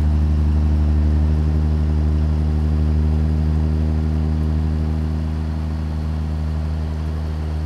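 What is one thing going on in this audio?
Tyres rumble on a road.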